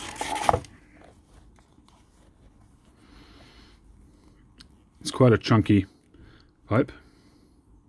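A soft cloth rustles as it slides over a hard object.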